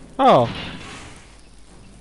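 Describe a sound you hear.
A fire burns and crackles.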